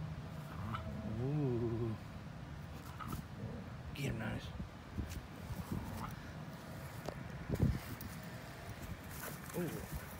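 Dogs yip playfully as they wrestle.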